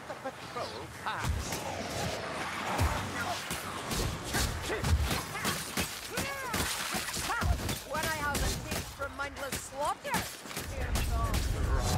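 Blades hack and thud into creatures in quick blows.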